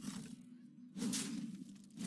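A magical impact bursts with a sharp crash.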